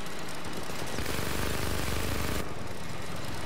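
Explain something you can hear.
A heavy gun fires a rapid burst.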